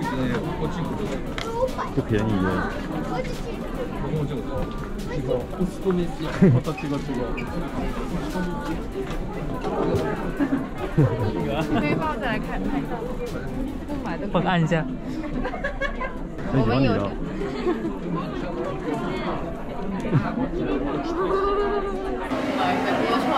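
A crowd of people chatters all around indoors.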